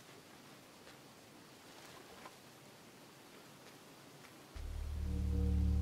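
A fox's paws patter softly over the ground.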